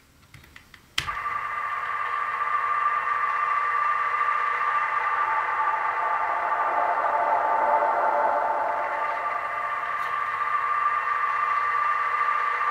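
A tape player plays back a steady warbling sound.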